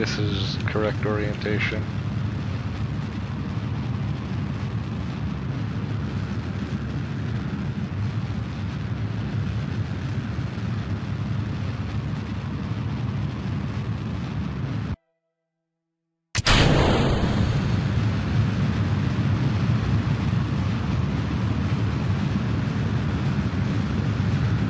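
A rocket engine roars with a steady low rumble.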